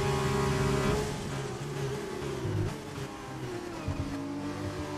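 A racing car engine drops in pitch as the car brakes hard.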